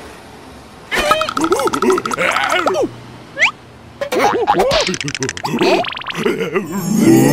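A small cartoon creature babbles and squeals in a high, squeaky voice.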